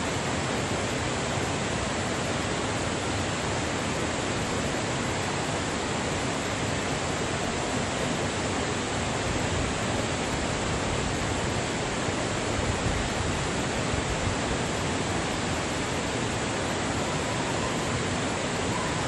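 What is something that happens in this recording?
A stream flows and gurgles steadily nearby.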